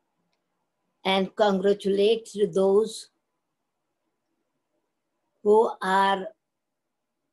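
An elderly woman speaks calmly and slowly, close to a microphone.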